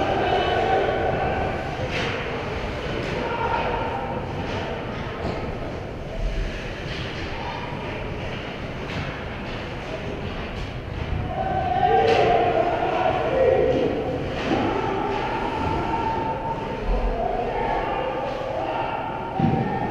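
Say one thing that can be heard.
Skate blades scrape across ice in a large echoing rink.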